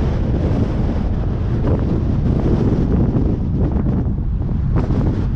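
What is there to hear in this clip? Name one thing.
A car drives along a road, with a steady low rumble of wind and tyres.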